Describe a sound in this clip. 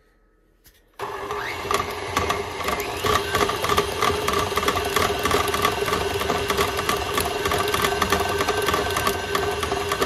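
An electric stand mixer whirs steadily as its beater churns thick batter.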